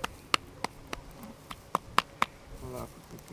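A hand pats a horse's neck with sharp slaps.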